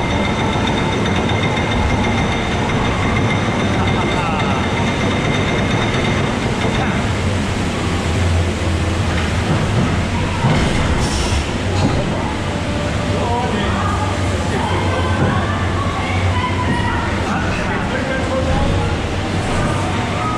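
A ride car rumbles steadily along a track.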